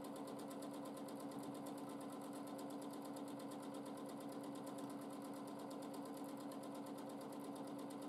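A sewing machine hums and stitches rapidly and steadily.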